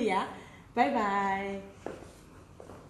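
A young woman speaks brightly and cheerfully close by.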